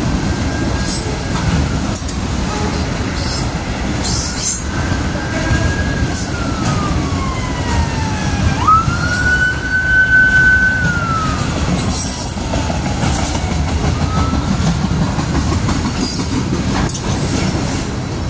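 A freight train rumbles past steadily, close by.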